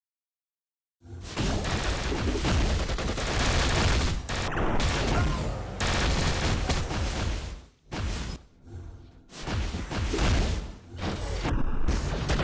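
Sound effects of a mobile video game battle play.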